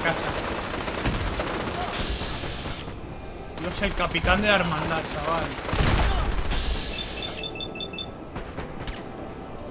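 Laser rifles fire in sharp zaps.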